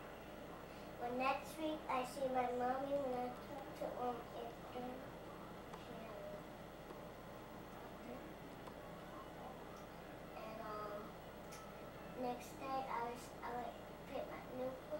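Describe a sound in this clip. A little girl chatters in a high voice close by.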